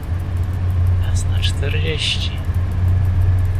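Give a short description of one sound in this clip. A man speaks casually into a microphone.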